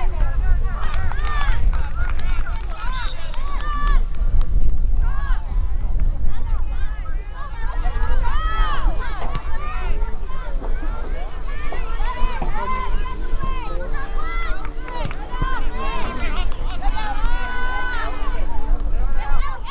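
Young women shout and call out to each other outdoors.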